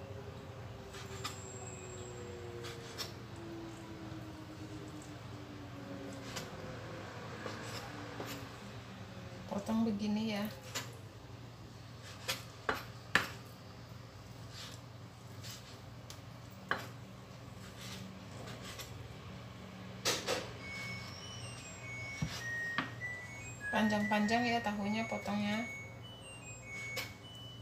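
A knife taps on a cutting board as food is chopped.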